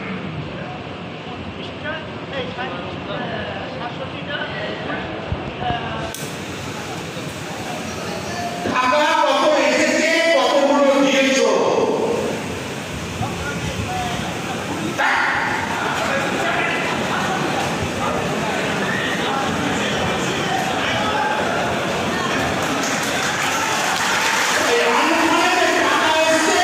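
A man speaks forcefully into a microphone through a loudspeaker.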